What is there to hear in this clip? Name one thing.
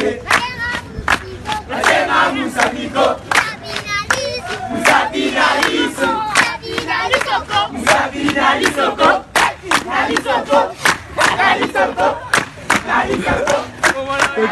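A crowd of children sings and shouts close by.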